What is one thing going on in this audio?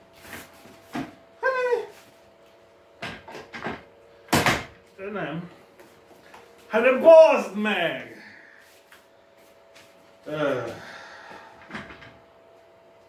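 A chair's plastic parts knock and clatter as a man handles it.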